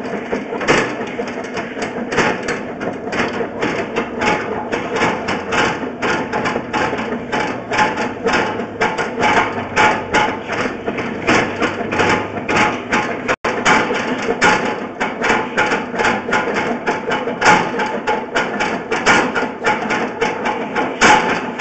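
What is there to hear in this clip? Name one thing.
Gravel rattles and clatters as a hose sucks it up underwater.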